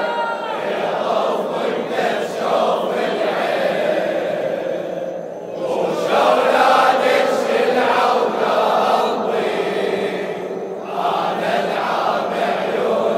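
A large crowd of men chants together in rhythm.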